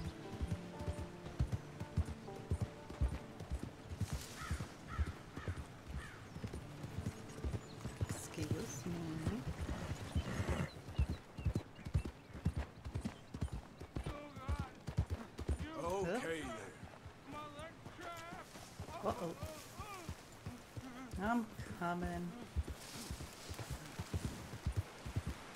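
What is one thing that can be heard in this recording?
Horse hooves clop steadily on a dirt trail.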